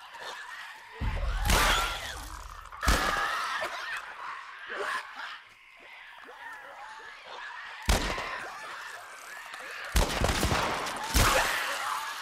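Loud gunshots ring out several times.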